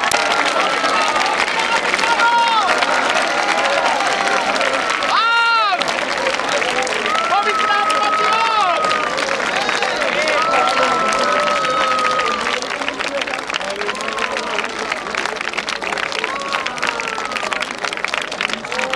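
A large crowd claps hands rapidly.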